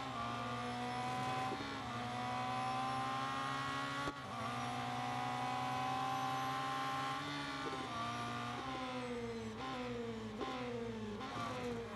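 A racing car engine roars at high revs, its pitch climbing and dropping with each gear change.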